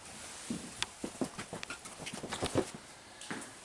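Footsteps walk across a wooden floor.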